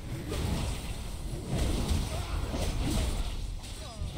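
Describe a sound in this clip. Fiery explosions boom and crackle in a fast battle.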